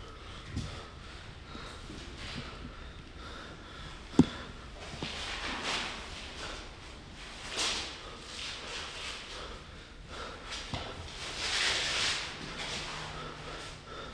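A young man breathes heavily close by.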